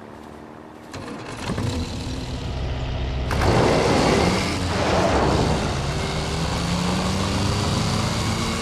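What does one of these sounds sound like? A vintage sedan's engine revs as the car pulls away.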